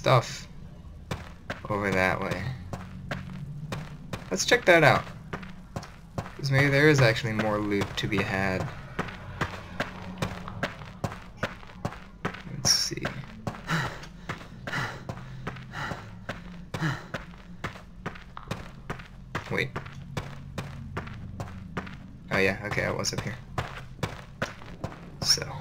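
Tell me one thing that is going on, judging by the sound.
Footsteps thud steadily on stone and dirt.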